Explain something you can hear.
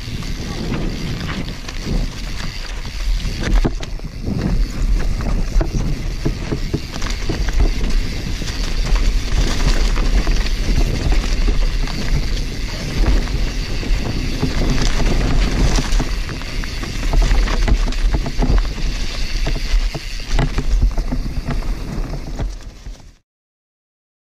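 Wind rumbles and buffets against a fast-moving microphone.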